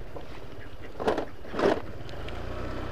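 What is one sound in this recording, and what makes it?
Ducks quack loudly nearby.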